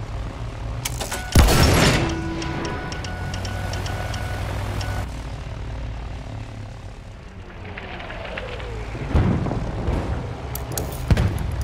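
An airship's engines drone overhead.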